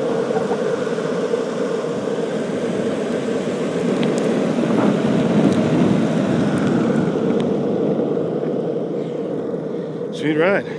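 Skateboard wheels roll and rumble steadily over rough asphalt.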